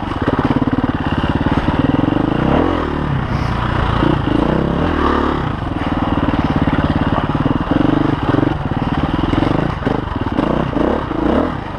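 A dirt bike engine revs hard, rising and falling in pitch.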